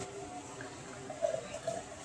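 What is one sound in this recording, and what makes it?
A drink pours from a can into a glass.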